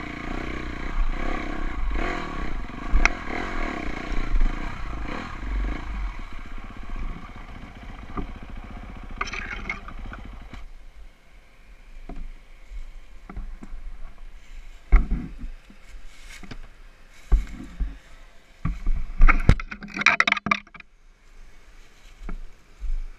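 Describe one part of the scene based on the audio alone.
Tyres scrape and bump over rocks and dry leaves.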